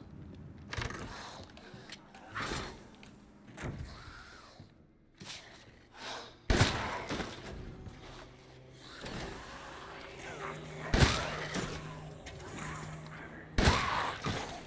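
Footsteps thud slowly across a wooden floor.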